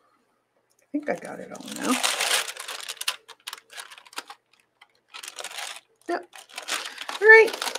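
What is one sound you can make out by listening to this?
Sheets of paper rustle and crinkle as they are lifted and moved.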